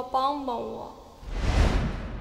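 A young woman speaks pleadingly, close by.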